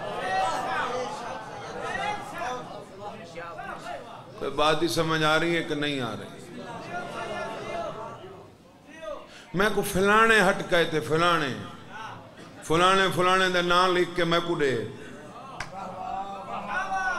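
A young man speaks into a microphone with passion, his voice rising into loud, chanted bursts.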